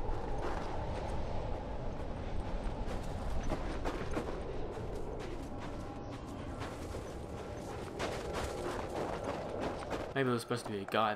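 Wind howls through a snowstorm.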